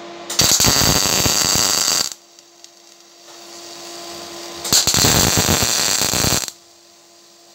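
A welding arc crackles and sizzles loudly in two bursts.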